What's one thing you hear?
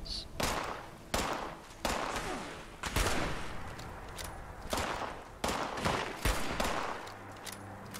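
Gunshots fire in quick bursts, each ringing out with an echo.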